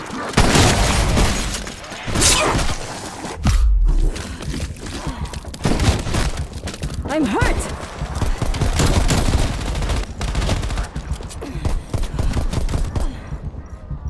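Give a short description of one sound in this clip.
Gunshots fire in rapid bursts, loud and close.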